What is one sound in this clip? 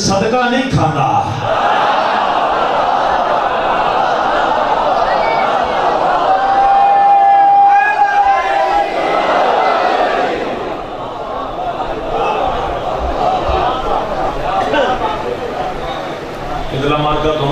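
A young man recites with feeling into a microphone, heard through loudspeakers in an echoing space.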